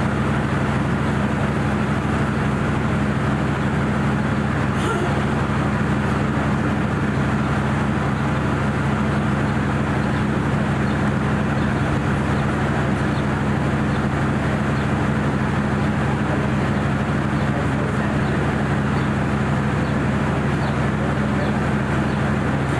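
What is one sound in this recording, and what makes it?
A locomotive engine drones low and steady.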